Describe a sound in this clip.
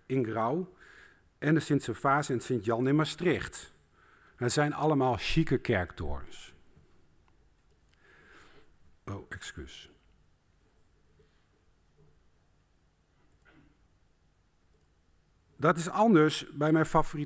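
A man speaks calmly into a close microphone, with pauses.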